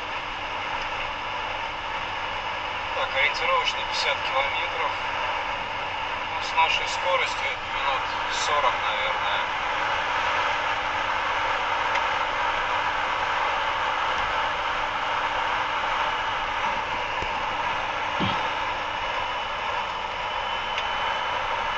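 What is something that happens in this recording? A car drives steadily along a road, its tyres rumbling on the road.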